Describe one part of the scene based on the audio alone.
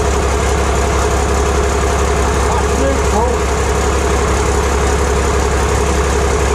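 A machine drones with a loud, steady hum.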